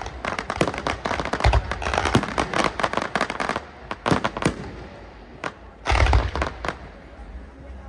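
Fireworks burst and crackle in rapid volleys.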